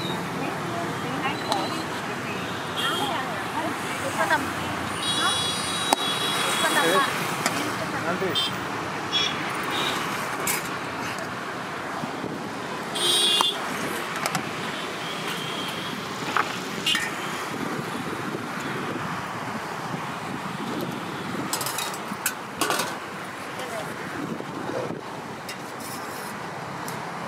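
Metal spoons and lids clink against steel pots.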